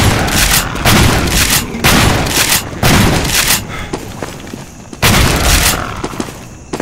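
A shotgun fires loud, booming blasts.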